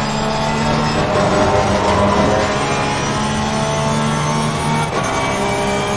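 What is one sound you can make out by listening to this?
A racing car engine shifts gears, its pitch dropping briefly.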